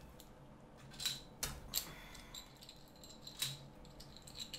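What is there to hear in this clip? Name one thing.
Plastic game pieces click as they drop into a game frame.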